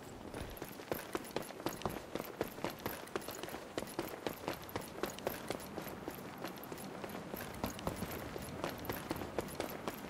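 Quick footsteps run over a stone pavement.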